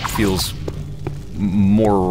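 A flaming sword whooshes through the air.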